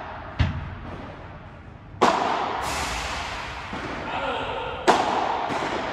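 Paddle rackets strike a ball with sharp pops that echo in a large hall.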